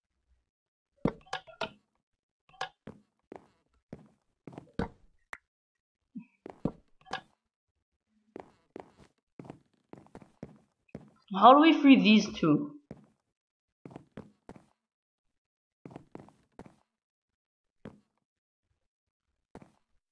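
Blocks are placed and broken with short, soft knocks.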